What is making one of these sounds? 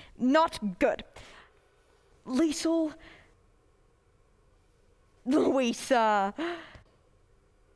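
A young man speaks with animation in short bursts.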